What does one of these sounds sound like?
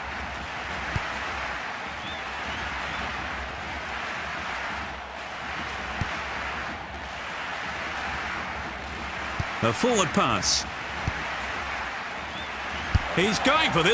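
A football is kicked with short thuds.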